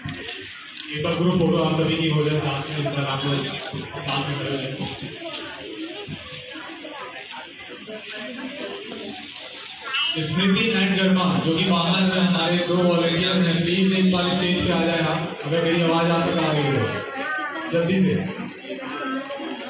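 A man speaks loudly through a loudspeaker in an echoing hall.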